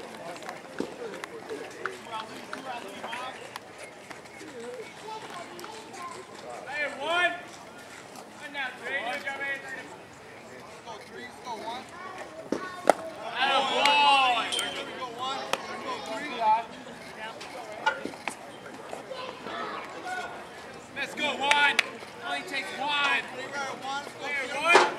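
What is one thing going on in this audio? Young men shout and cheer outdoors across a ball field.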